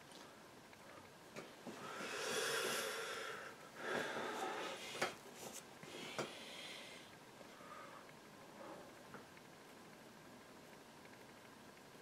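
A brush dabs and scrapes softly on canvas.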